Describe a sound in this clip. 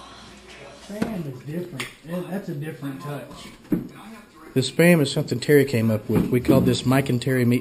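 Several men and a woman chat casually around a table close by.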